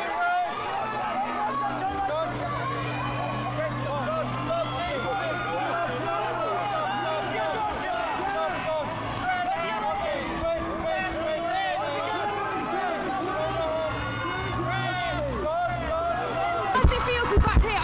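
A crowd of photographers shouts and calls out all around.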